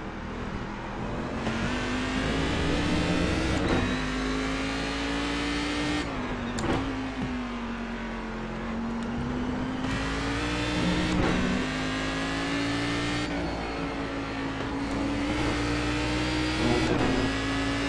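A racing car engine roars steadily, its pitch rising and dropping with gear shifts.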